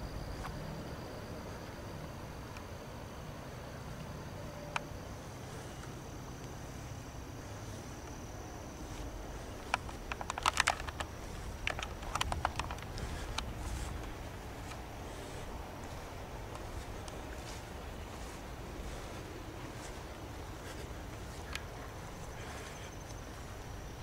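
Wind blows across an open field and rumbles against the microphone.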